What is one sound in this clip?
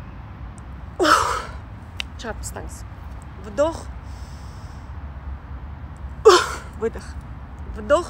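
A young woman speaks close by in short bursts with animation.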